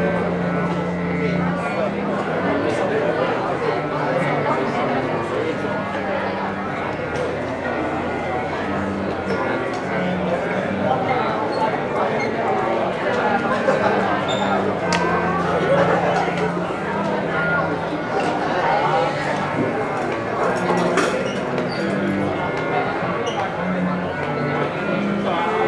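Two cellos play a slow duet in a large echoing hall.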